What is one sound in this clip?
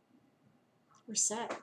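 A middle-aged woman speaks briefly and calmly close to a microphone.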